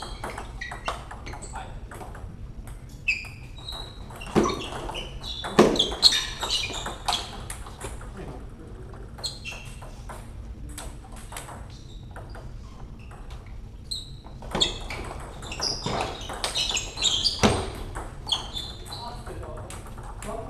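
A table tennis ball clicks against paddles and bounces on a table in quick rallies.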